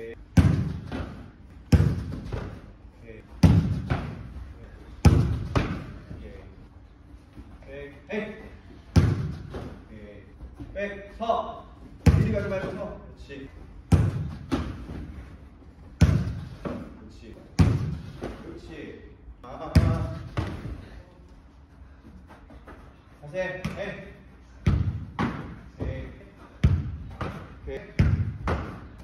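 A football thuds into a goalkeeper's gloves again and again, echoing in a large hall.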